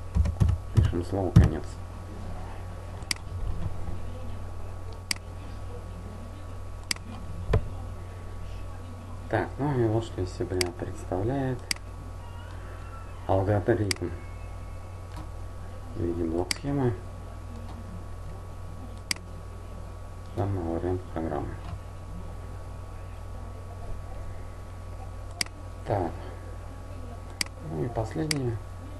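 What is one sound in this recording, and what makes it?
A computer mouse clicks sharply now and then.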